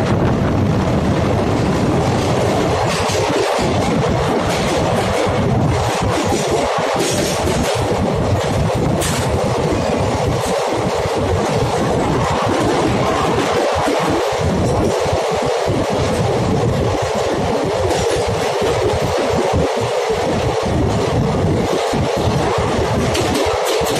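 Wind rushes past a moving train.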